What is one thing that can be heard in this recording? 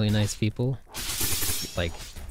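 A magic blast bursts with a loud crackling whoosh.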